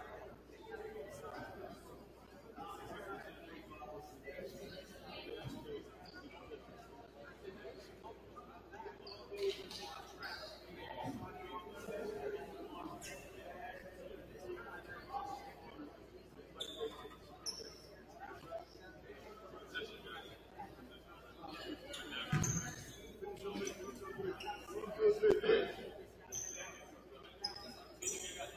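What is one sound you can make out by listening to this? Young men in a huddle talk and call out in a large echoing gym.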